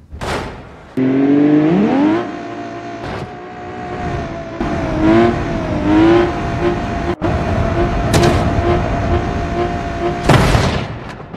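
A small engine whines and revs as a toy-like vehicle races along.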